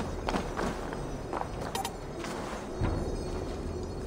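Footsteps thud on a tiled roof.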